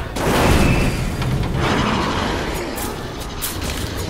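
A monster growls and snarls nearby.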